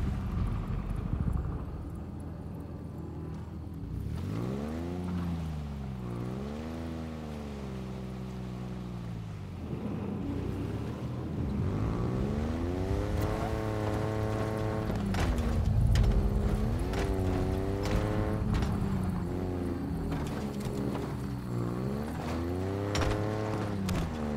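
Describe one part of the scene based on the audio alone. A vehicle engine hums and revs up and down.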